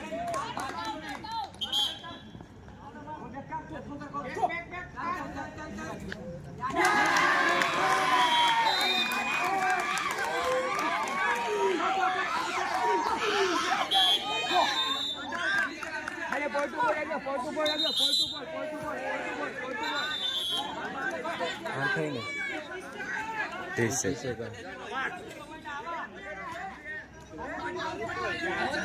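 A crowd of young men shout and cheer outdoors.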